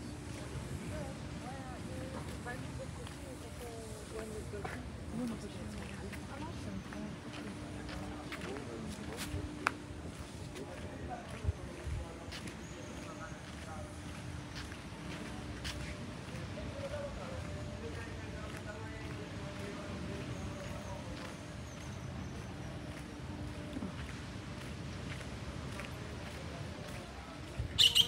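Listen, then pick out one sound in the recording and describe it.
Footsteps tap on a stone path.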